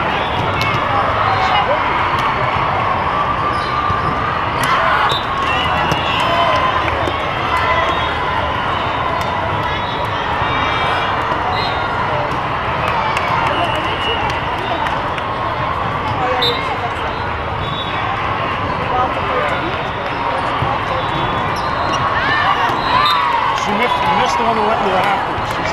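A large crowd chatters throughout a big echoing hall.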